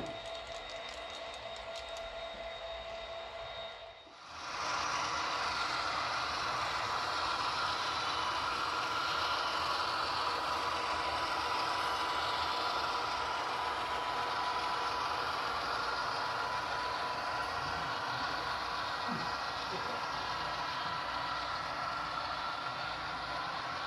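A small model train whirs steadily along its track.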